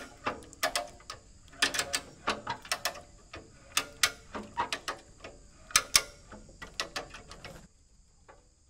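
A hammer strikes a metal bucket in quick, ringing blows.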